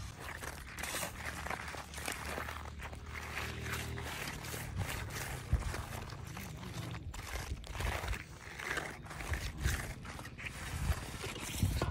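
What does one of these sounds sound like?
A trowel scrapes and swishes over wet concrete.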